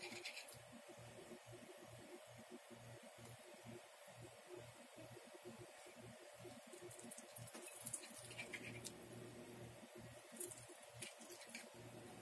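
A knife cuts softly through pastry dough on a hard surface.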